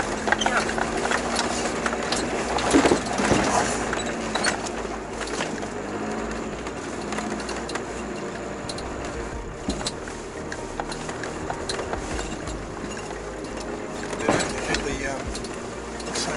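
Rocks bang against the underside of a vehicle.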